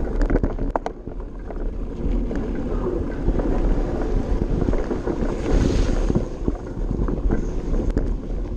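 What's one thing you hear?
Wind buffets loudly, as if rushing past at speed.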